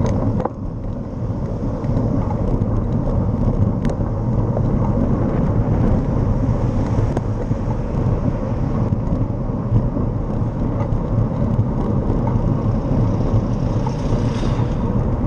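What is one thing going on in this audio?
Wind rumbles loudly across a microphone while moving along a road.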